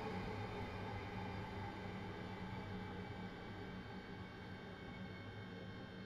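A train rumbles away and slowly fades into the distance.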